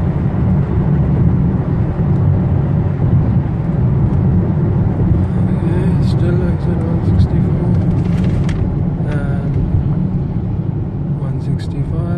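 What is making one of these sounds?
Tyres roll and hiss steadily on a wet road inside a moving car.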